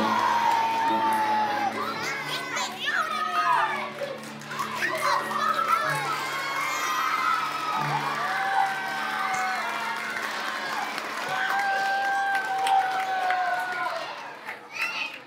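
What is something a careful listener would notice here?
Children and a woman sing a song together in a large echoing hall.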